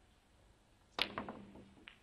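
A snooker cue strikes the cue ball.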